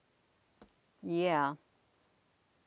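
A middle-aged woman says a short word close to a microphone.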